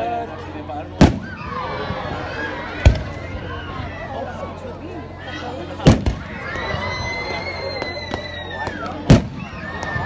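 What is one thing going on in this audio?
Fireworks burst with loud booms outdoors.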